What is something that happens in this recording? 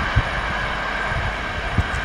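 A second train approaches with a low rumble.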